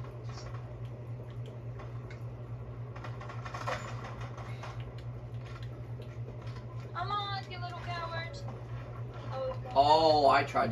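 Video game sound effects play from a television speaker.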